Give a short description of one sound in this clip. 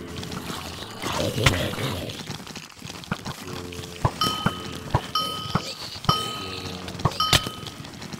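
A sword strikes repeatedly with sharp thuds.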